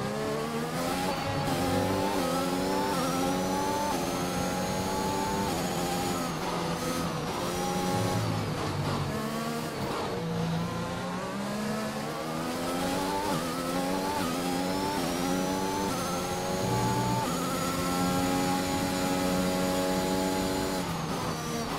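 A racing car engine screams, rising in pitch through each gear and dropping sharply at each shift.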